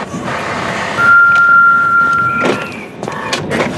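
A printer whirs as it prints a page.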